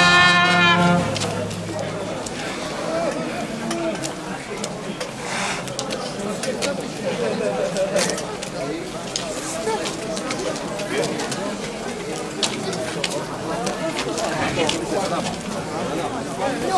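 A large crowd of men and women chatters nearby.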